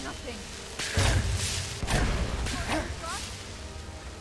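A crackling magical blast bursts with a deep boom.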